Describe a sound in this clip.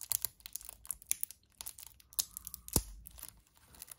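A knife blade slices through thin plastic wrap.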